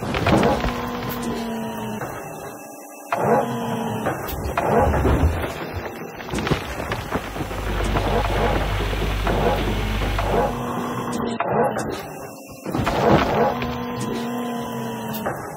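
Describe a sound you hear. Dirt and gravel pour and rumble into a truck bed.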